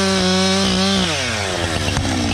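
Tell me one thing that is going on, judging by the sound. A chainsaw engine revs high, then drops to idle.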